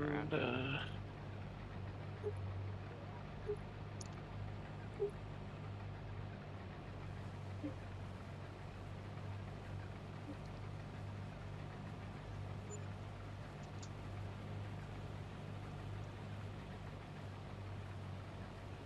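A combine harvester engine hums steadily from inside the cab.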